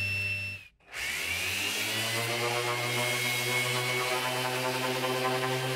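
An orbital sander whirs steadily as it sands a flat surface.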